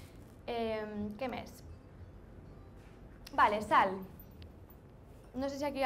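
A woman speaks through a microphone in bursts.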